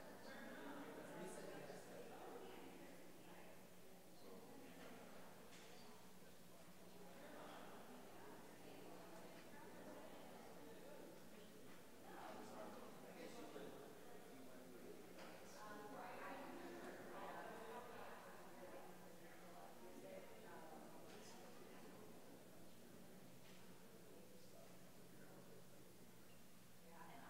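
A mix of men and women chat quietly at a distance in a large echoing hall.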